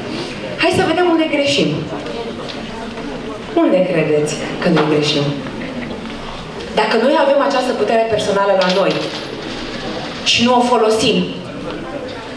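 A young man speaks with animation through a microphone in a large echoing hall.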